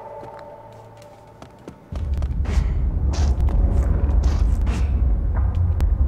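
Light footsteps patter quickly on stone.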